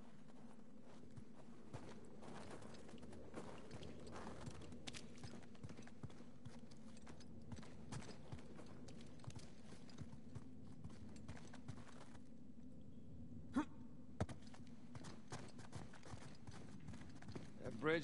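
Footsteps crunch over snow and stone.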